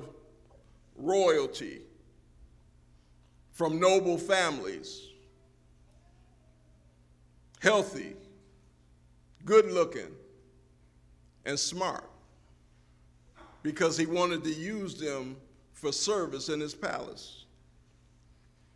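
A man speaks slowly and deliberately through a microphone in a large echoing hall, with long pauses.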